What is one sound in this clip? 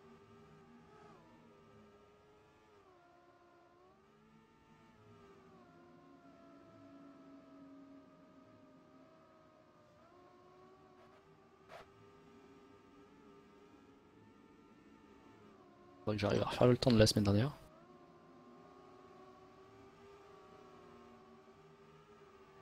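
A racing car engine whines steadily, rising and falling in pitch as the car speeds along.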